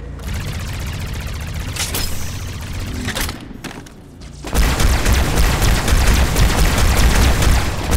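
Energy weapon shots fire in bursts.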